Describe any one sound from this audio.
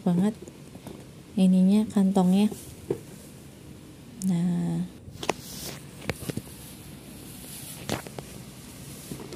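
Hands rub and tap a leather bag.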